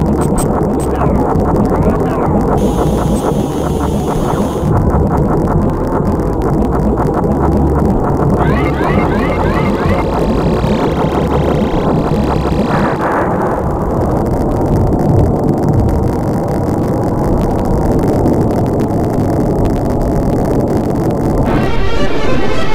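Video game music plays throughout.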